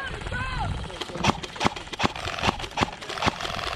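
Airsoft guns fire in sharp, rapid shots.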